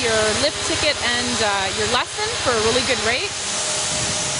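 A young woman speaks with animation close to a microphone, outdoors in wind.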